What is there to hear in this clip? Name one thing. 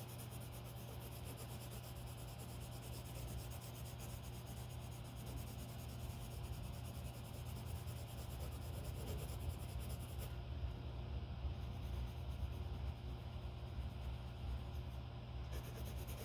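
A colored pencil scratches softly across paper.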